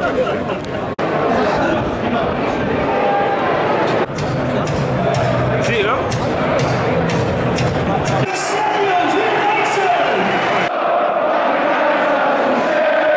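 A large stadium crowd roars and murmurs in a wide open space.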